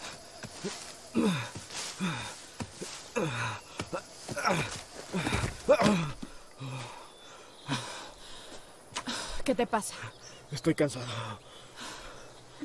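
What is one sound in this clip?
A man groans and cries out in pain nearby.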